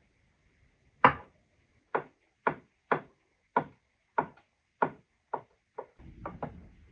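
A knife chops through beetroot on a wooden board in steady knocks.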